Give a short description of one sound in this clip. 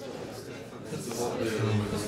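Young people chatter in a busy room.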